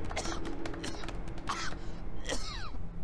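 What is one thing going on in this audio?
Several people clap their hands.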